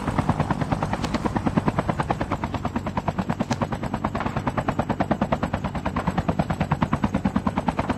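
A helicopter's rotor thumps fast and steadily close by.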